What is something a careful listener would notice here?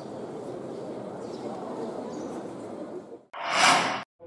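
A crowd murmurs in a large echoing hall.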